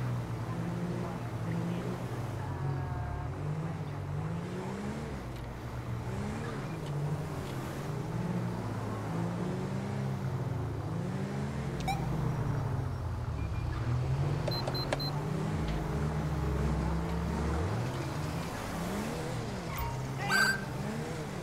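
Engines of passing cars rise and fall in pitch.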